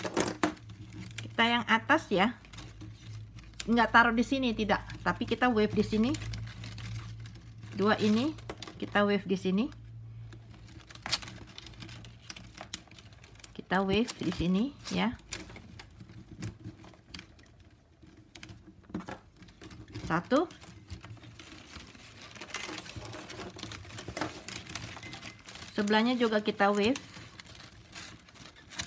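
Plastic strapping strips rustle and click as they are woven by hand.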